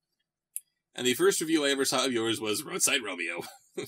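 A man reads aloud close to a microphone.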